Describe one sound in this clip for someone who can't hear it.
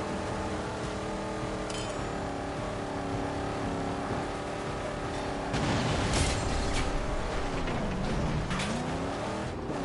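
Tyres skid and scrape over sand.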